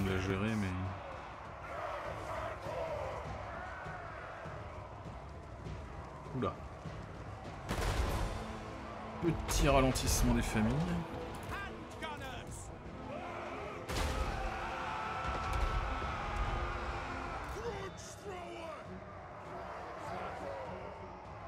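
Soldiers clash and fight in a noisy battle.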